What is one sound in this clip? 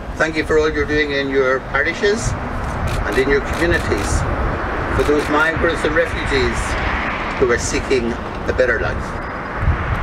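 An elderly man speaks calmly into a microphone outdoors.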